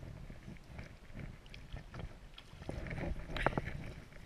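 A fish splashes in shallow water at the bank.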